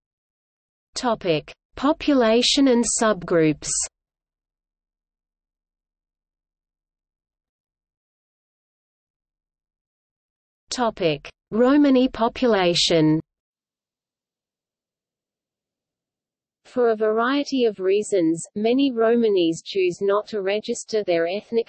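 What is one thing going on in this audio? A trumpet plays a bright melody up close.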